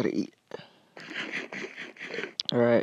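Quick crunchy munching sounds repeat as food is eaten.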